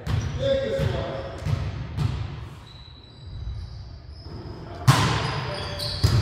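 A volleyball is hit with sharp slaps in a large echoing gym.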